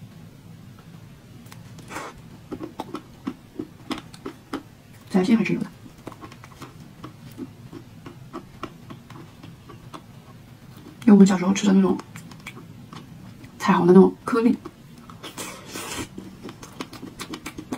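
A young woman bites and chews soft cake close to the microphone.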